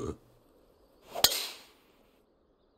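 A golf club swishes and strikes a ball.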